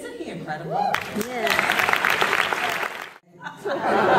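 An audience claps in a large hall.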